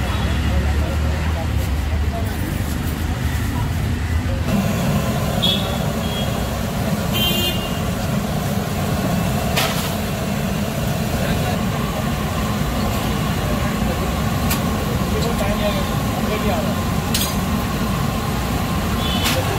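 Hot oil sizzles and bubbles steadily as food deep-fries.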